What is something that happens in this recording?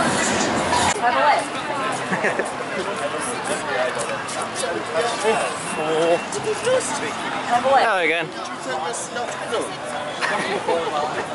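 People chatter outdoors in the background.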